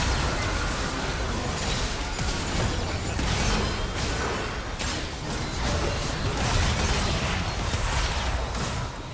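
Magic blasts and impacts crackle and boom in a video game battle.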